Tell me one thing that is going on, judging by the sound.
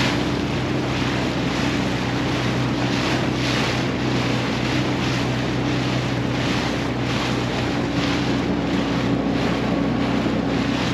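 Water rushes and splashes steadily against a moving boat's hull.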